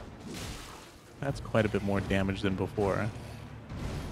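A sword swings and strikes with a clash.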